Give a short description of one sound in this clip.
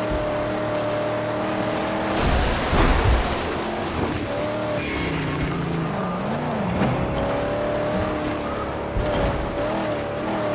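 A car engine roars steadily, rising and falling in pitch.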